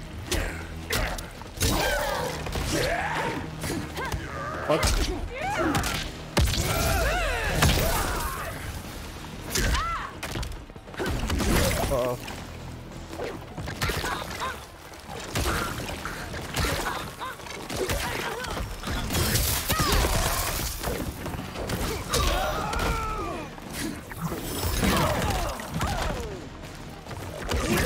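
Fighters grunt and yell as they strike.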